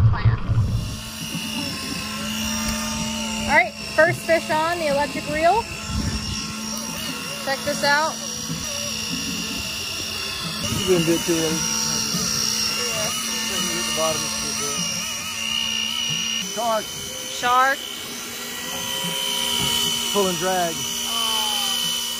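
An electric fishing reel whines steadily.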